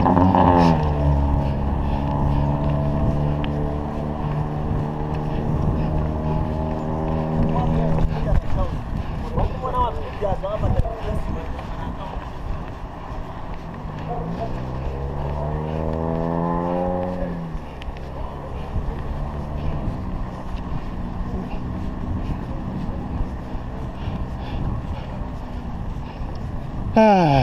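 Wind rushes past a moving cyclist.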